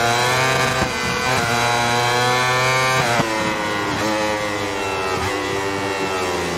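A motorcycle engine screams at high revs, dropping in pitch with each downshift and then climbing again.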